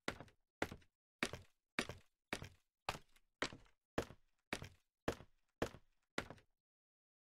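Footsteps tap on a wooden ladder in a quick, steady rhythm.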